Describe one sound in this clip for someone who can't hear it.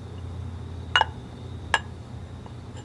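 A spoon clinks and scrapes against a bowl.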